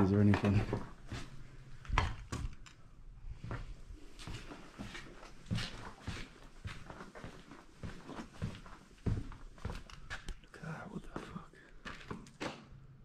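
Footsteps crunch over loose rubble and debris.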